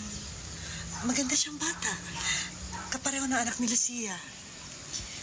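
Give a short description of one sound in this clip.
A second woman talks with animation, close by.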